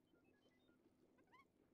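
A small robot beeps in quick chirps.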